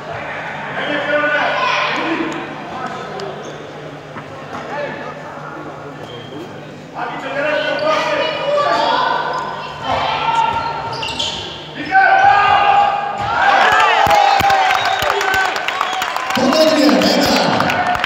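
A handball bounces on the hall floor.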